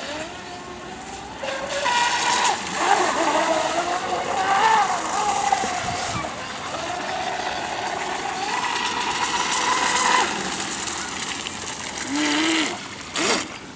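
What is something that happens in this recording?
A small model boat motor whines at high speed, rising and falling in pitch.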